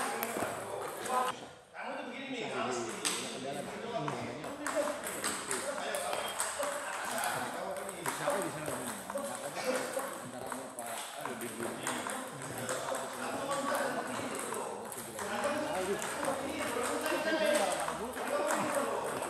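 Table tennis balls click sharply off paddles and tables in quick rallies.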